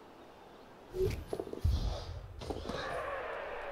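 Heavy bodies thud together.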